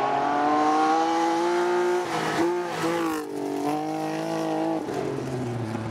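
A rally car engine roars loudly close by, revving and shifting gears as it speeds past.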